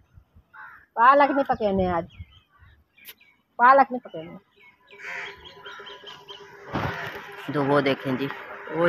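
A woman speaks close by, in short phrases.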